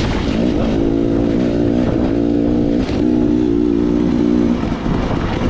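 A dirt bike engine revs and hums up close, rising and falling in pitch.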